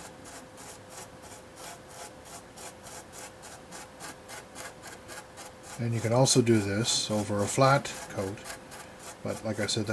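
A small brush scrubs softly and rhythmically against a hard surface.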